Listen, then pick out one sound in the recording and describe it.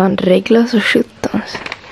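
A cat chews and licks at a treat close by.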